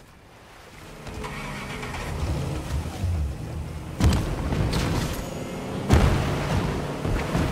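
A boat engine roars as the boat speeds over water.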